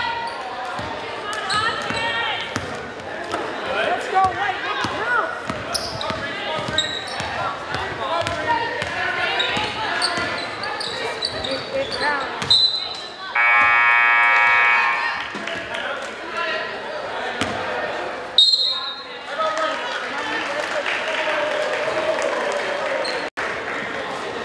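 A crowd murmurs and calls out in a large echoing gym.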